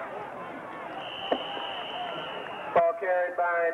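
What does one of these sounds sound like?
A referee's whistle blows one long blast.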